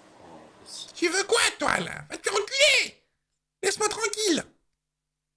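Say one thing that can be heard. A teenage boy talks and shouts over an online call.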